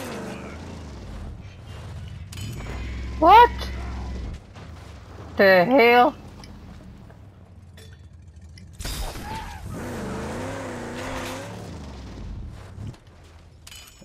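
A car engine roars.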